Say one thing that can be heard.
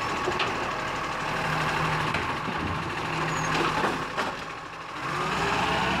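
Rubbish tumbles out of a bin with a clatter.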